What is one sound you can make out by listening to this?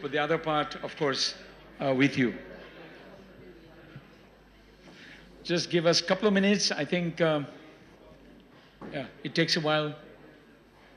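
A man speaks into a microphone in short bursts, heard through loudspeakers.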